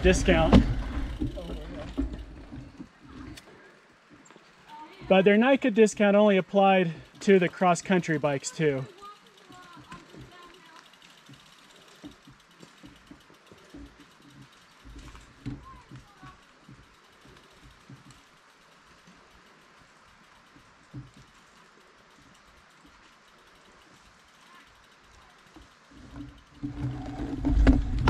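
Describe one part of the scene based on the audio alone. Mountain bikes rattle over a rocky trail in the distance.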